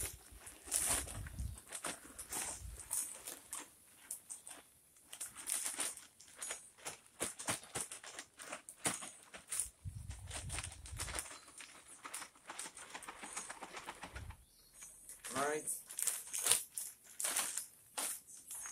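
A plastic bag crinkles and rustles as it is shaken.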